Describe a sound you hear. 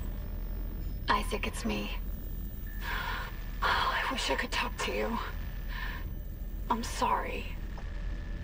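A young woman speaks emotionally through a recorded message.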